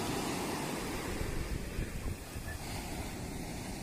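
Shallow water splashes around feet wading in the surf.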